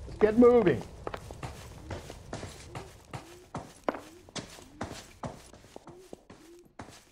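Footsteps thud on wooden stairs and floorboards at a quick, even pace.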